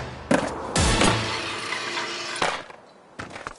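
A skateboard slams onto hard pavement.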